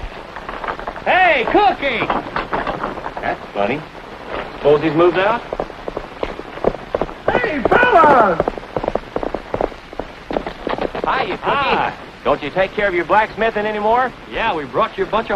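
Men talk and call out with animation, heard through an old, hissy recording.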